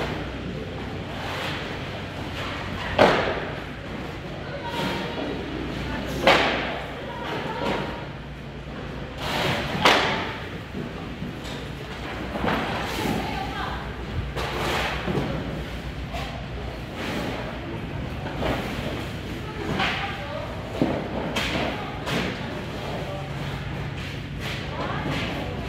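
Footsteps splash on a wet concrete floor.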